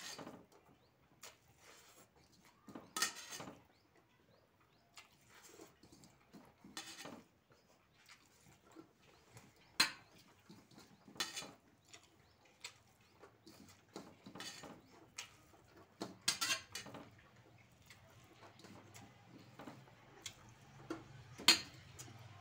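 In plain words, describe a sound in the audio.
A man chews and smacks his lips loudly close to a microphone.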